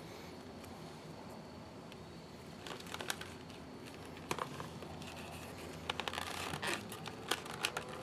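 A leather lace slides and rasps through a holster.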